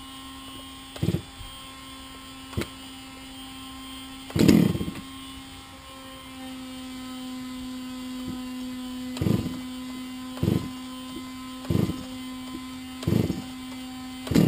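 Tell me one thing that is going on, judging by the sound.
A tool thuds and scrapes in the soil at a steady pace.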